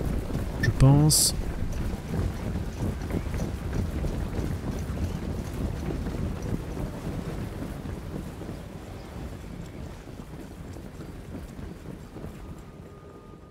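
A large body of soldiers tramps across grass in a low, dense rumble that slowly fades.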